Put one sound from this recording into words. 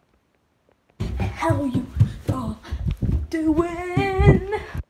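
A young boy talks close by with animation.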